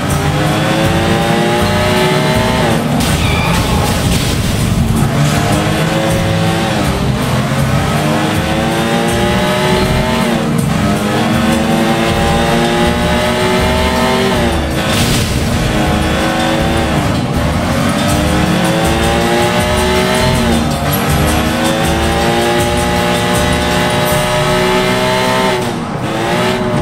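A car engine revs up repeatedly, rising in pitch and dropping with each gear change.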